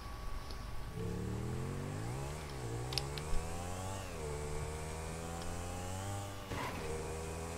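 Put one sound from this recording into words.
A sport motorcycle accelerates through its gears.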